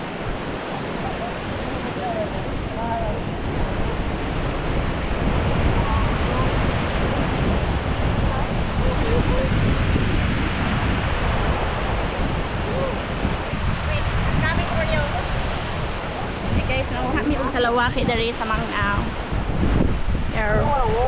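Waves wash onto the shore steadily.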